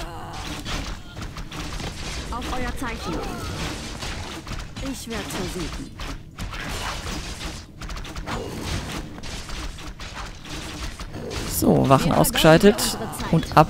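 Swords clash and spells crackle in a busy battle.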